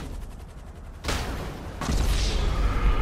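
A car crashes to the ground with a loud thud.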